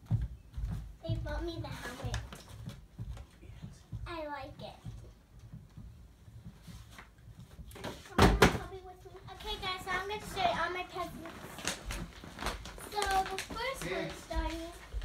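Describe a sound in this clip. A young girl talks and squeals excitedly up close.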